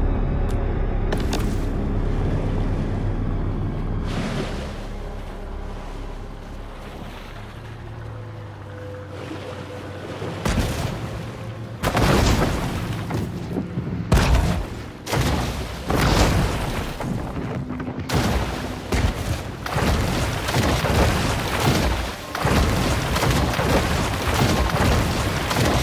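Water sloshes and churns as a shark swims through it.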